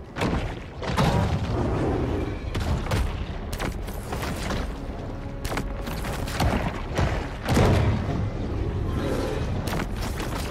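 Electric blasts crackle and roar loudly.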